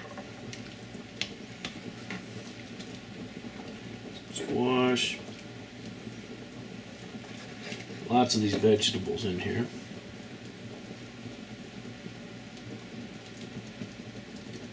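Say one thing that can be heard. A ladle clinks against a metal pot.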